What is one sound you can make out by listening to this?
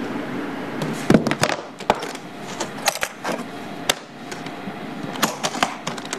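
Latches on a hard case click and knock.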